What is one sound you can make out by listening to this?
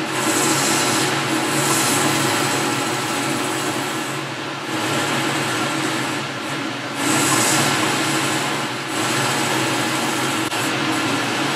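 A cutting tool hisses and scrapes against turning metal.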